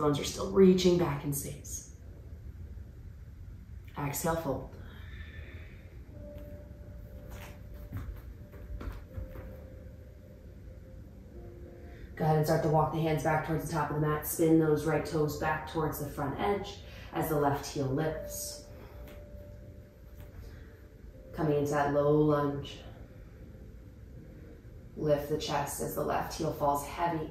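A young woman speaks calmly and clearly, pausing between phrases.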